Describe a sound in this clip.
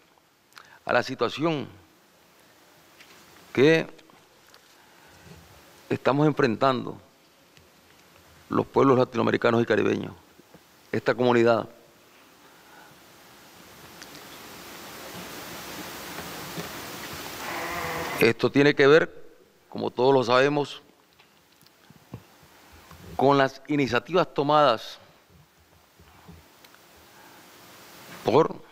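A middle-aged man speaks calmly into a microphone in short bursts with pauses.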